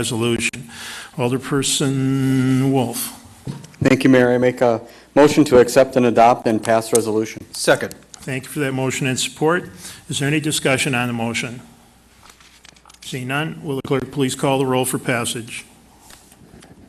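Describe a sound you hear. A man speaks steadily into a microphone, with short pauses, then falls silent.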